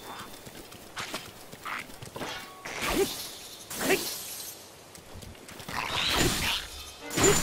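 A sword swings and slashes in quick strokes.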